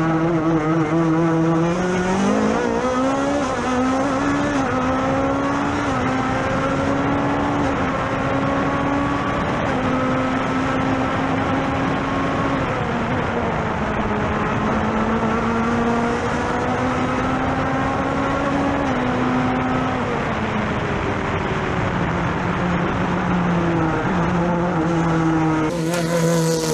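Wind rushes past an open cockpit.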